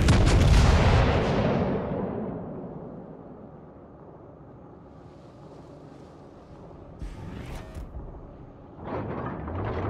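Shells splash into the water.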